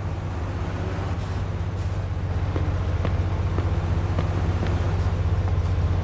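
Footsteps run on a pavement.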